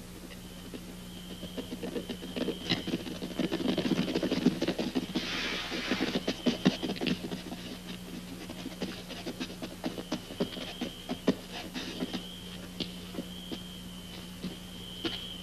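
Horses gallop over dirt.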